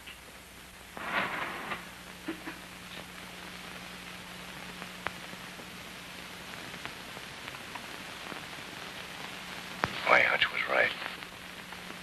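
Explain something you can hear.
A man speaks briefly in a low voice, close by.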